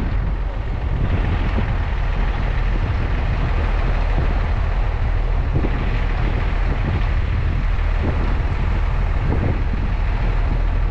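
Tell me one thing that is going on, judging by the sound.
Wind buffets and roars past outdoors.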